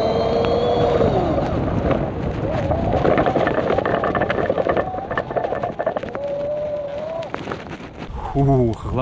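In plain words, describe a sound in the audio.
Bicycle tyres rumble and crunch over a rough dirt road.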